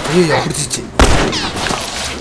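A gunshot cracks loudly nearby.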